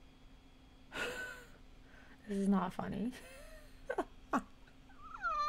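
A young woman laughs softly behind her hand, close by.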